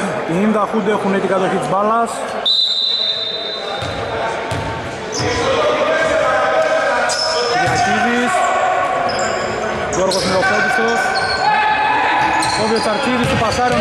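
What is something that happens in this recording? Men call out to each other in an echoing hall.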